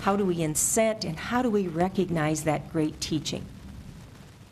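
A woman speaks with animation into a microphone nearby.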